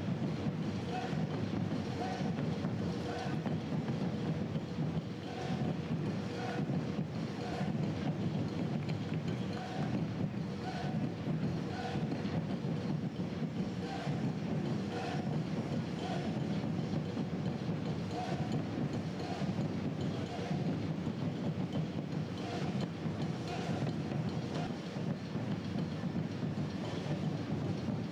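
Runners' shoes patter on the road.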